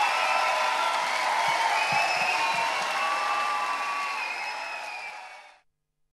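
A man sings.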